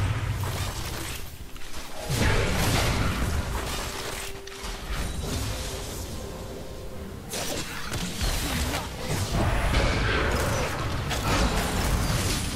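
Magic blasts and spell effects whoosh and burst in rapid bursts.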